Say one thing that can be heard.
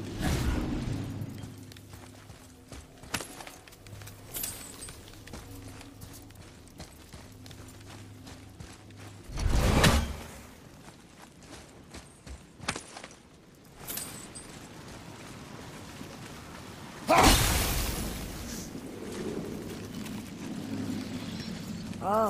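Heavy footsteps crunch on stony ground.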